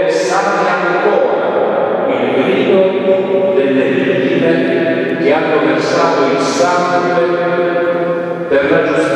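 A man chants in a slow, sustained voice through a microphone in a large echoing hall.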